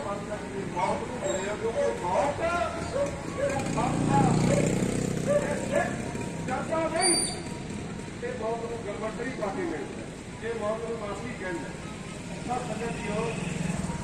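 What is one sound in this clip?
A man speaks steadily and clearly, close to a microphone.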